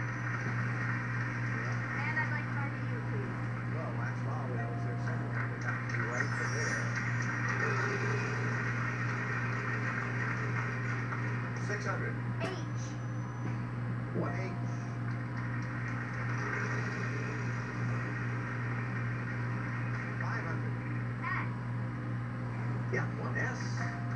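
Video game music and bleeping sound effects play from a television.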